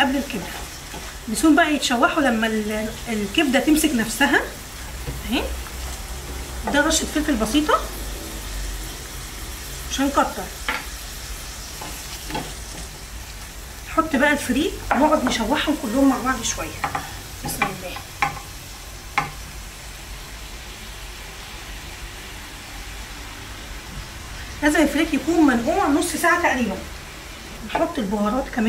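A spatula scrapes and stirs food in a metal pan.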